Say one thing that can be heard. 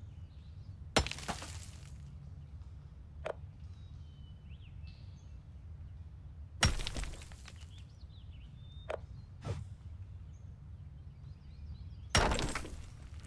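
A pickaxe strikes stone with loud, ringing cracks.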